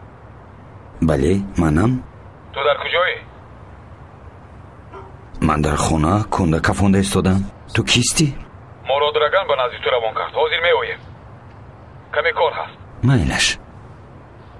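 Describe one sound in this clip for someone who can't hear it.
A man speaks quietly into a phone, close by.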